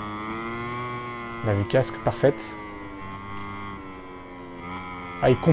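A motorbike engine whines steadily at high revs.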